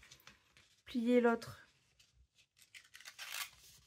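Paper rustles and creases as it is folded by hand.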